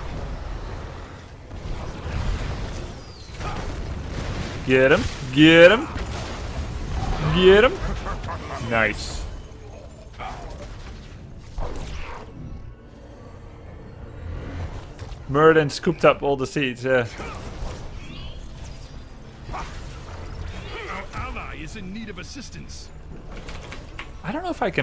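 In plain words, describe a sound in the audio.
Game effects zap and thud.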